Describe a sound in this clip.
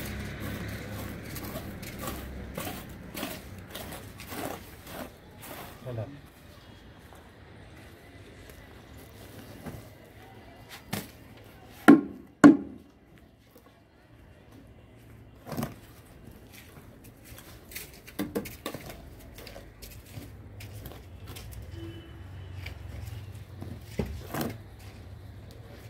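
A trowel scrapes and spreads wet cement.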